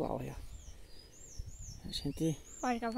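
A small bird chirps in short, high, rising notes.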